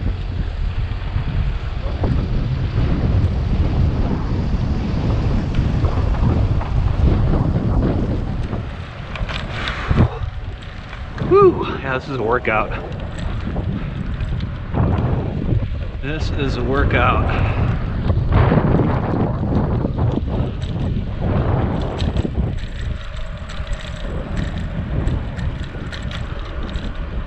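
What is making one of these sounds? Wheels rumble steadily over rough concrete pavement.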